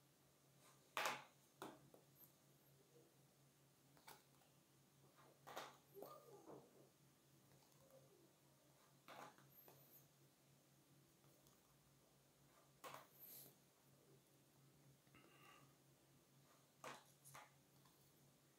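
Stiff cardboard cards tap and rustle as hands handle them.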